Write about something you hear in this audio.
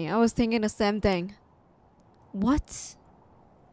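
A young woman speaks with animation into a microphone, in short bursts.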